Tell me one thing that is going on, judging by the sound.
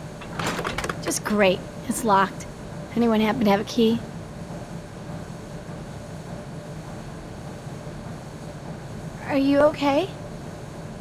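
A young girl speaks, close by.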